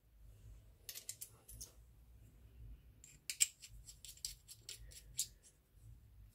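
Small metal clicks come from a razor being handled.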